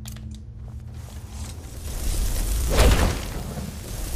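A fire spell bursts with a rushing whoosh.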